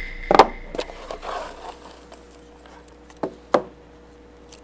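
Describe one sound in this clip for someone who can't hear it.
A cardboard box knocks and rustles against a table.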